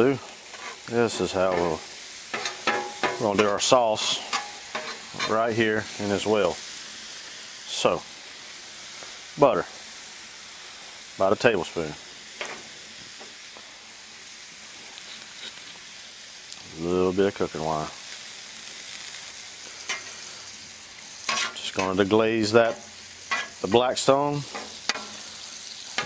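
A metal spatula scrapes and taps against a hot griddle.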